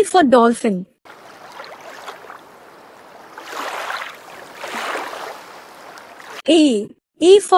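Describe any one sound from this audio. Water splashes as a dolphin slides and thrashes in a pool.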